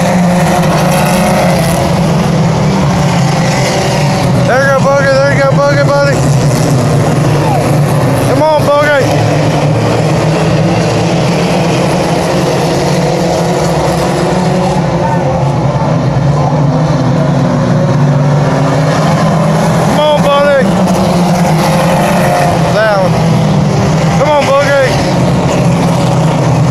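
Race car engines roar loudly and steadily outdoors.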